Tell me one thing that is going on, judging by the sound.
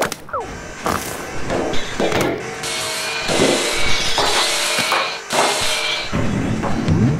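Large gears grind and clank steadily.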